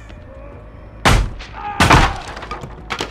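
A heavy metal thud rings out as something is hung on a hook.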